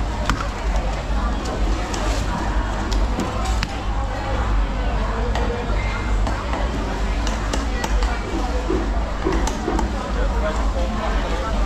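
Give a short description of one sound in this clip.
A knife chops on a wooden block with sharp knocks.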